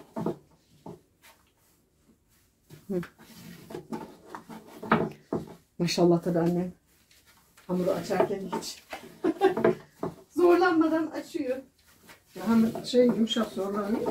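A rolling pin rolls and taps on a wooden board.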